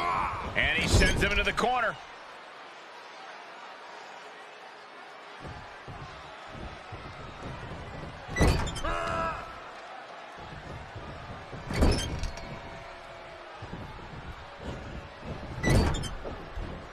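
Heavy blows thud.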